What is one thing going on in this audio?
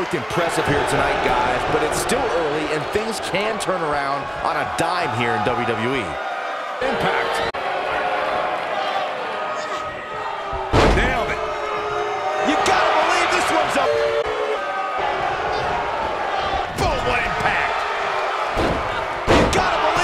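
A large crowd cheers and murmurs throughout.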